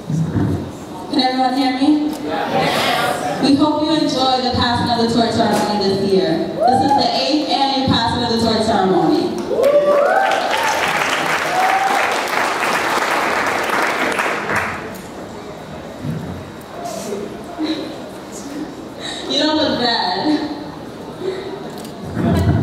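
A young woman speaks with animation through a microphone and loudspeakers in an echoing hall.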